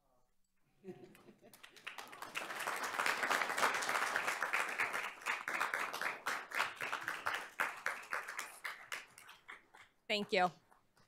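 A room full of people applauds loudly.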